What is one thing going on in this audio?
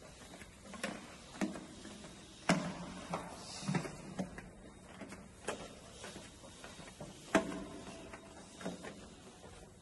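Footsteps thud on hollow stairs at a steady walking pace.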